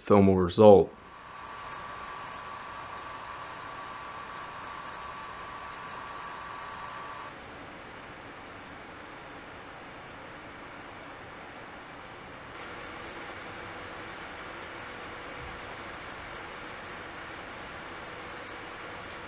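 A computer fan whirs steadily with a faint high whine.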